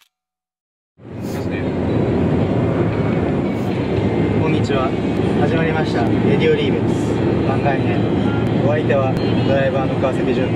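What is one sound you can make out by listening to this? A car rumbles steadily along the road, heard from inside.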